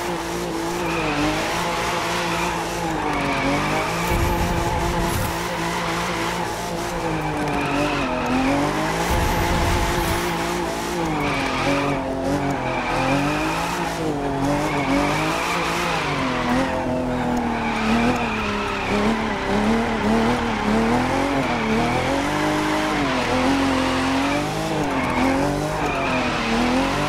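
Tyres squeal on the tarmac.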